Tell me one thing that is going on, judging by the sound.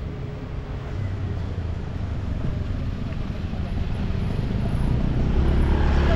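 A motorbike engine hums as it approaches.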